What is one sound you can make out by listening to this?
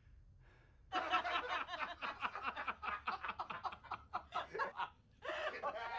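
A group of men and women laugh together.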